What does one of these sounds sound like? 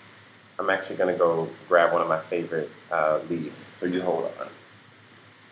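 A young man speaks calmly and close up.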